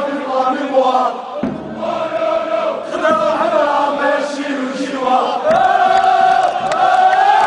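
A crowd of men chants loudly together close by, outdoors.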